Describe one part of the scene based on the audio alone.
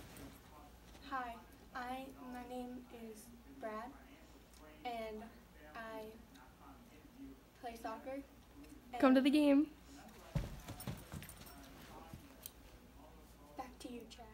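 A young woman speaks calmly into a microphone, pausing often.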